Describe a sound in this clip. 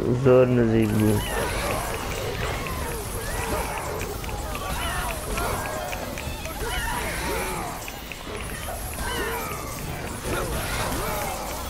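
Blades whoosh and slash through the air again and again.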